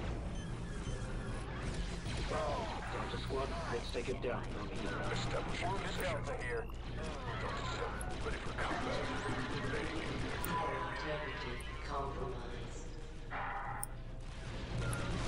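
Blaster rifles fire rapid zapping shots.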